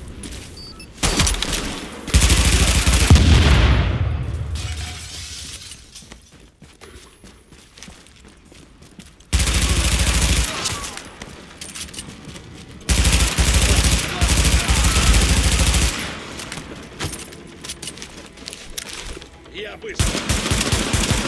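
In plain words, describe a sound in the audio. Rapid gunfire bursts loudly, close by.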